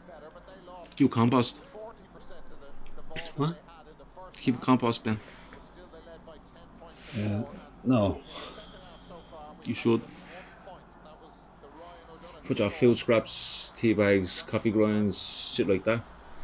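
A man speaks calmly nearby, in short bursts.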